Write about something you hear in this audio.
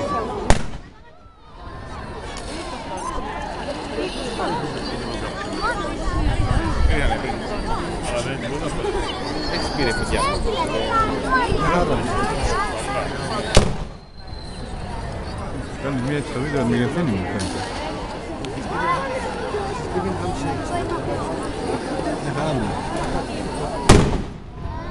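Fireworks explode with loud sharp bangs.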